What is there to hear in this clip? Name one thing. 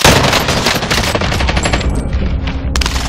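Rifle gunfire cracks.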